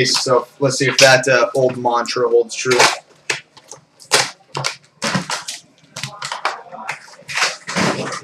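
A cardboard box taps and scrapes as it is handled.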